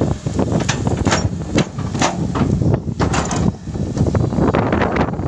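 Rocks and dirt scrape and clatter against an excavator bucket.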